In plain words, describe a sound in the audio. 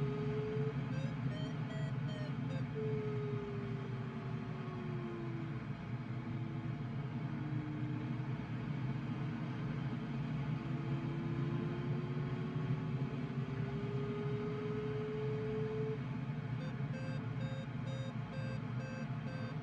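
A glider's variometer beeps rapidly.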